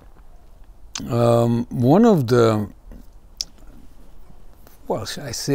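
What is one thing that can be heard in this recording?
An older man speaks close to a microphone in a drawn-out, sing-song voice.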